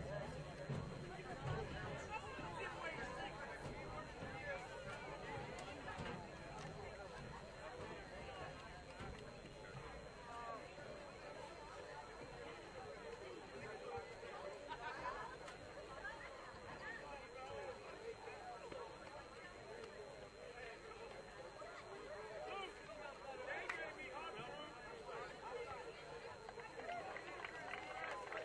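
A crowd of people chatter outdoors, some distance away.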